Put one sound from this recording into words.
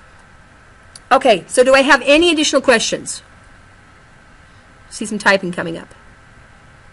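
A middle-aged woman speaks briefly over an online call.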